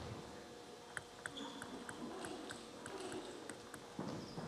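A ping-pong ball bounces sharply on a table.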